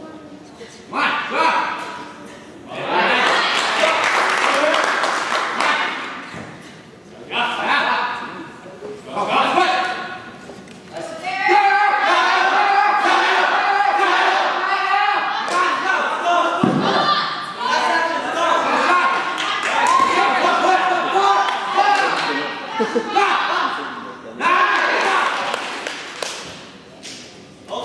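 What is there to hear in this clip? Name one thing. A crowd of young people cheers and shouts encouragement loudly, close by, in bursts.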